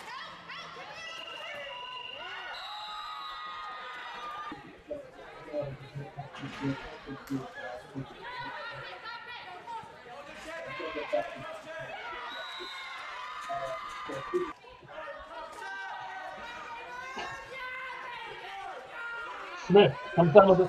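Lacrosse sticks clack together.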